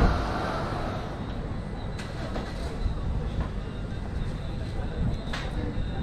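People chatter faintly in the distance.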